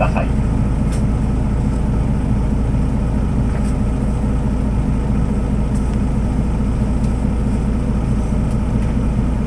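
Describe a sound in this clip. A tram rumbles steadily close by.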